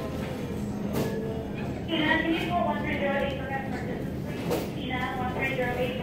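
Footsteps pass close by.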